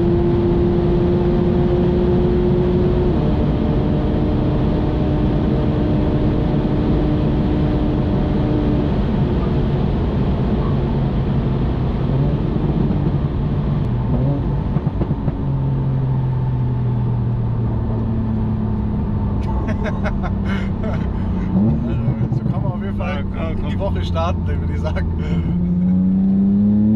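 A car engine drones steadily at high speed, its pitch shifting with gear changes.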